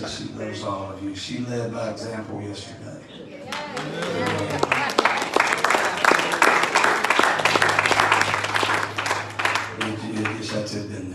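A man speaks with feeling through a microphone in an echoing hall.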